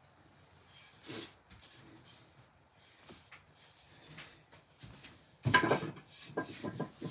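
A mallet knocks sharply on wood, several times.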